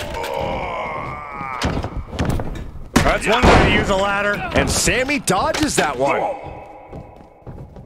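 Heavy thuds of bodies hitting a wrestling ring ring out.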